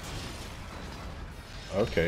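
A heavy impact booms and kicks up rumbling debris.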